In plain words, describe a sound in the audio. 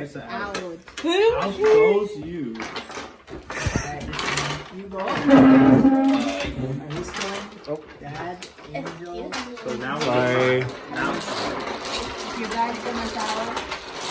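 Several young men and women talk and laugh loudly together close by.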